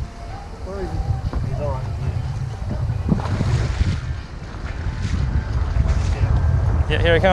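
Wind blusters steadily across a microphone outdoors on open water.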